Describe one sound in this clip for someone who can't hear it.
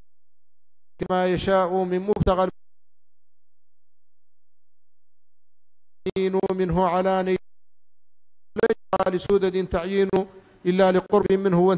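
A middle-aged man speaks steadily into a microphone, in bursts with pauses.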